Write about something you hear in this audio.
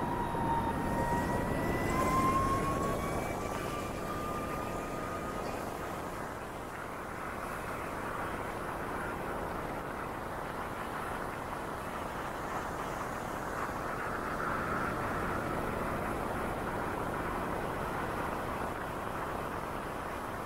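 Car tyres roll over the road.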